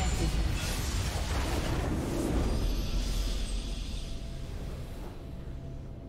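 A loud game explosion booms and rumbles, then fades.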